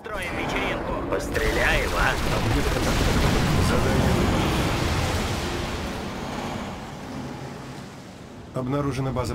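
A huge explosion roars and rumbles away.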